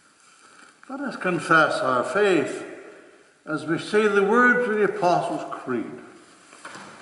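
An older man reads aloud calmly in an echoing room.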